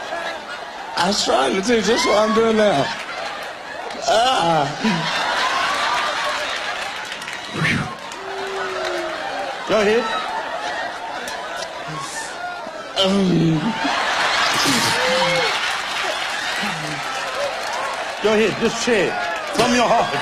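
A younger man answers into a microphone and laughs at times.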